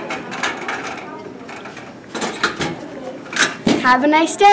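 A metal locker door rattles open.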